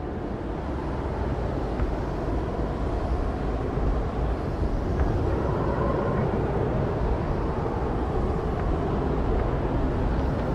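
A mining laser hums and crackles steadily underwater.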